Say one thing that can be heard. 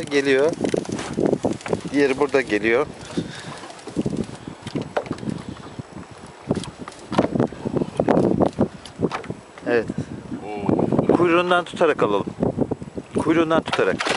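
Water laps gently against a boat's hull.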